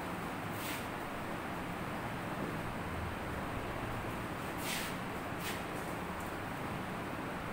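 A cloth wipes across a whiteboard.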